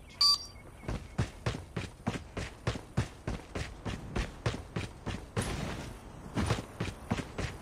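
Footsteps run quickly over dirt.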